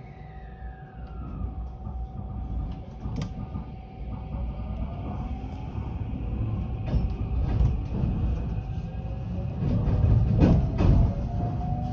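A train rumbles louder as it pulls away and gathers speed.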